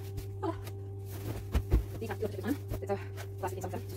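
Pillows thump softly onto a bed.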